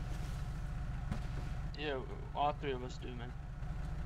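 A car trunk pops open.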